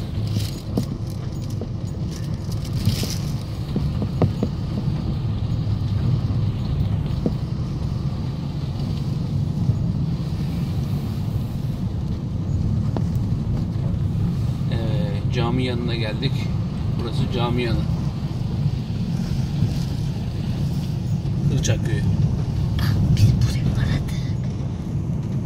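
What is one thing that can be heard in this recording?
Tyres roll over a rough road.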